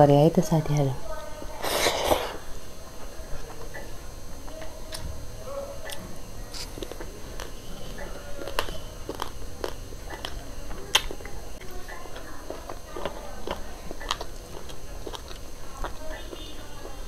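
Fingers squish and mix rice in a metal bowl.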